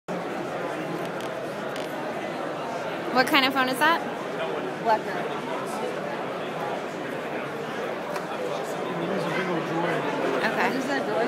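Many people chatter in the background, indoors.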